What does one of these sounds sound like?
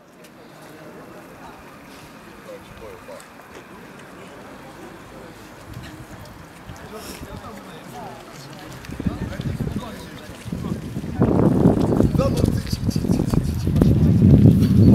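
A crowd murmurs softly in the distance outdoors.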